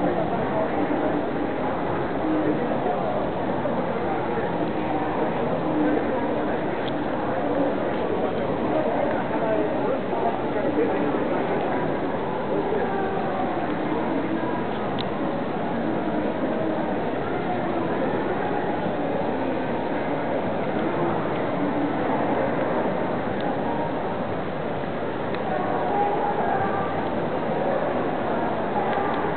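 A crowd of people talks and murmurs throughout a large echoing hall.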